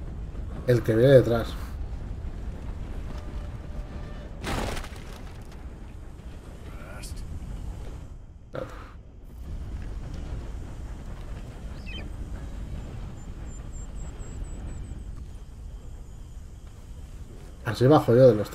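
A train rumbles along on its tracks.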